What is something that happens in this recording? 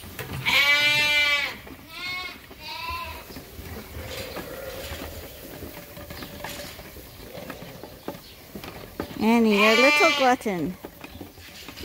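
Young lambs bleat loudly and shrilly close by.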